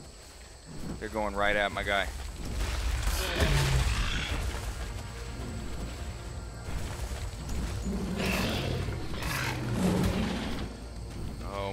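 A huge beast roars loudly nearby.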